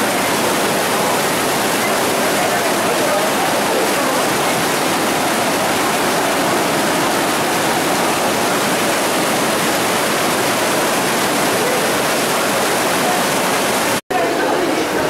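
Water rushes and splashes as it streams down steps and across the pavement.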